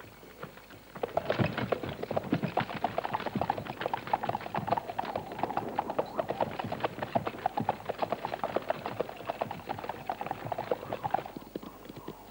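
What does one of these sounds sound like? Horses' hooves gallop and pound on a dirt track.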